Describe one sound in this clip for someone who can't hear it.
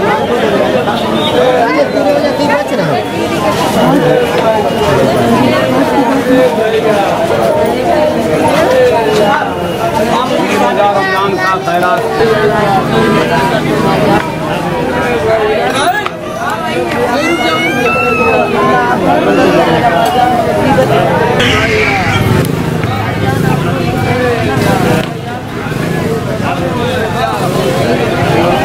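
A crowd of men chatters all around.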